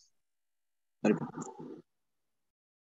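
A second man speaks briefly over an online call.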